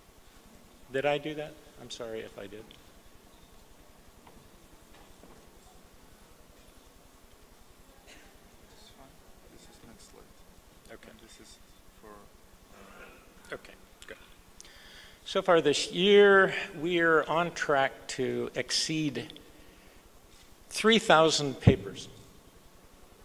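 An elderly man speaks into a microphone in a large echoing hall, pausing between phrases.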